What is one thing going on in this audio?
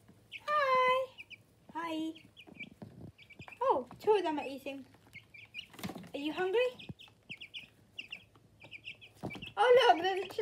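Chicks peep in short, high chirps.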